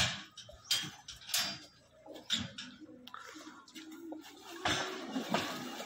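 A metal gate rattles and clanks.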